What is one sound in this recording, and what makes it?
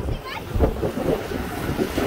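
Waves wash against rocks.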